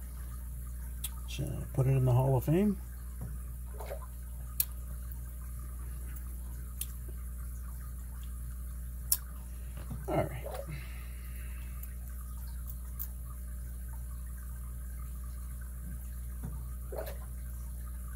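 Small metal picks click and scrape inside a padlock.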